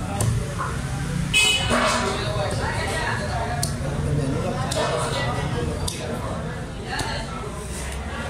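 A knife scrapes scales off fish.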